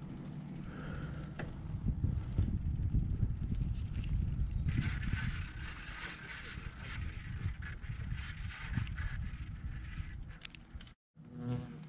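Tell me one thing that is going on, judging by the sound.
Bicycle tyres roll over a paved road.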